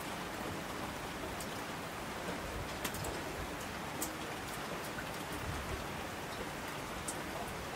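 Streams rush and splash down a slope.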